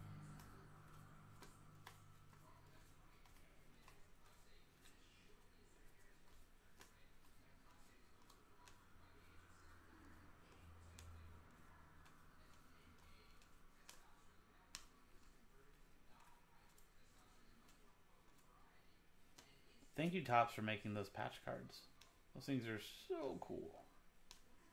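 Trading cards click and flick softly as they are shuffled by hand.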